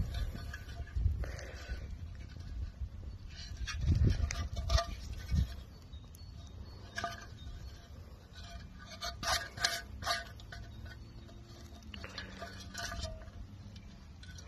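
Fingers scrape and tap on a dirty old metal object.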